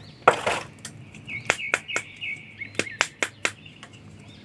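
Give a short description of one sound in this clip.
Small plastic toy figures click and tap as they are handled.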